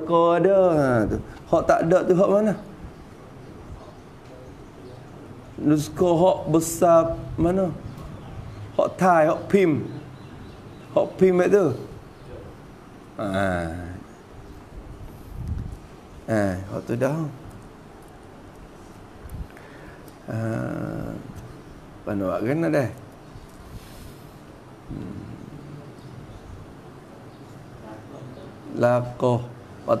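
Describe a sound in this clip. A man speaks calmly into a nearby microphone, in short phrases with pauses.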